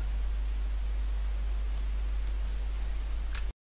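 A sheet of paper rustles softly.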